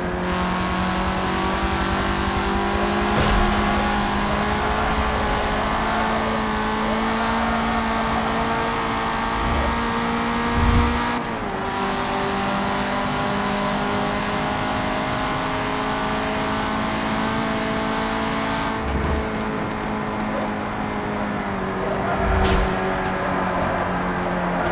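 Tyres hiss on the road at speed.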